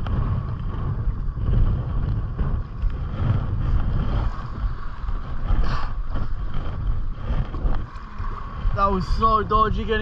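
A paddle splashes and dips into the water.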